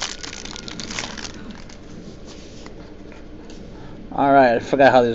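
Stiff plastic crinkles and rustles as cards are handled.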